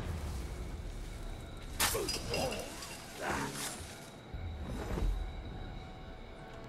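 Tall grass rustles as someone moves through it.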